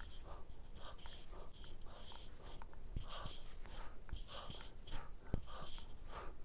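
A man breathes out heavily in quick, even bursts, close to the microphone.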